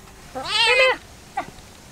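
A cat meows loudly.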